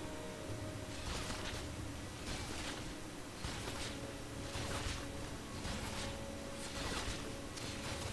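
Fighting in a video game crashes and whooshes in short bursts.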